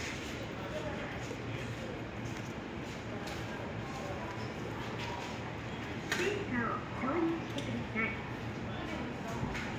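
Paper tickets rustle and slide on a metal counter.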